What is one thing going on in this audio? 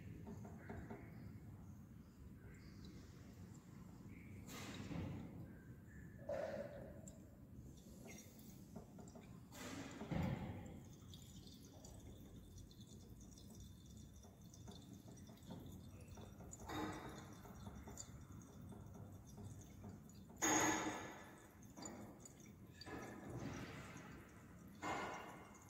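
Liquid swirls and sloshes softly in a glass flask.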